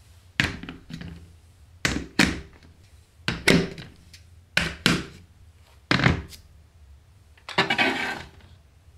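Plastic pieces clack together as they are set in place.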